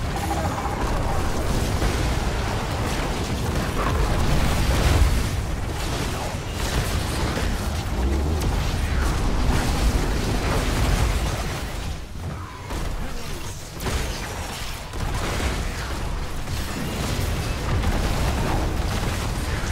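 Game spell blasts and impacts crackle and boom in a busy battle.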